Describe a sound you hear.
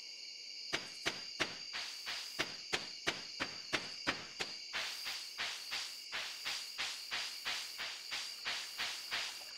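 Footsteps tap along a dirt path at a steady walking pace.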